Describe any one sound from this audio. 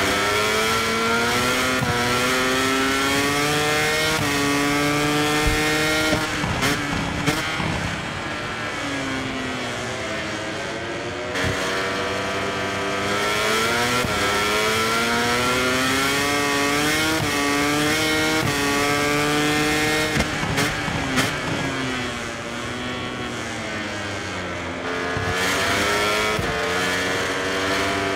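A racing motorcycle engine screams, climbing in pitch through each gear and dropping between shifts.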